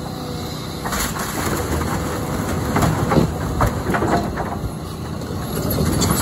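Debris crashes and thuds to the ground.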